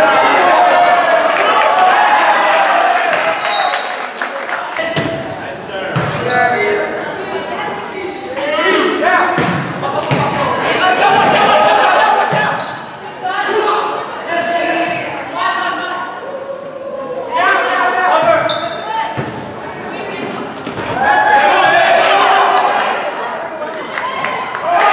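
A crowd of spectators cheers and shouts.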